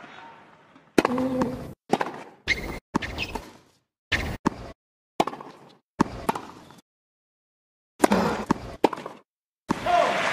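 Tennis balls are struck with rackets in a rally, with sharp pops.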